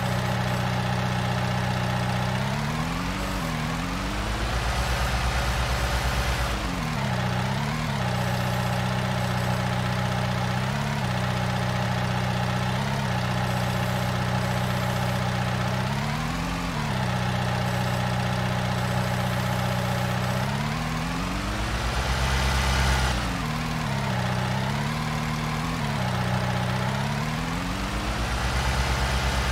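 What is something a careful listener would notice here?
A tractor engine hums steadily and revs up and down.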